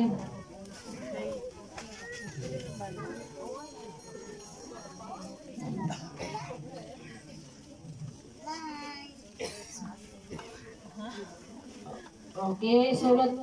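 A crowd of men and women talks quietly outdoors.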